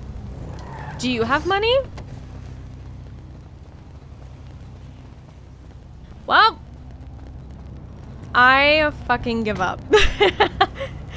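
A young woman talks with animation into a close microphone, her voice rising and falling sharply.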